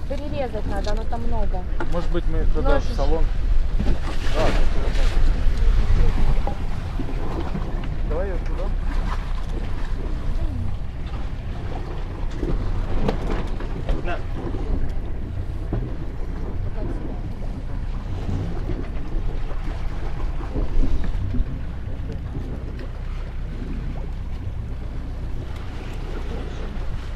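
Waves splash against a boat's hull.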